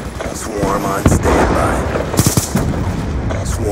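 An assault rifle fires a few shots.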